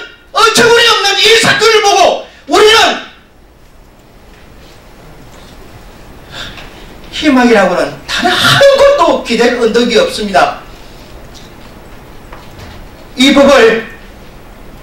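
A middle-aged man speaks loudly and emotionally into a microphone, pausing at times.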